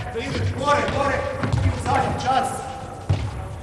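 A young man calls out loudly in a large echoing hall.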